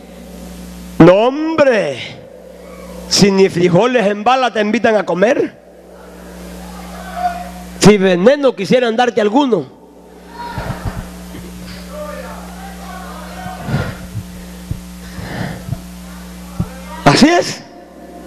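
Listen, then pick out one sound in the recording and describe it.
A man preaches passionately into a microphone, heard through loudspeakers in an echoing hall.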